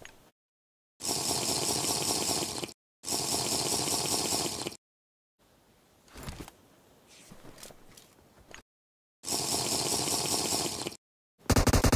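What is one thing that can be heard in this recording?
A smoke grenade hisses loudly in steady bursts.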